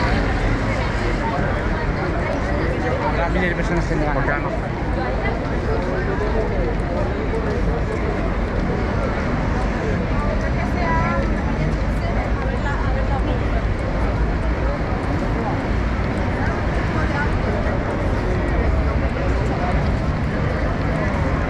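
A crowd of people chatter and walk outdoors.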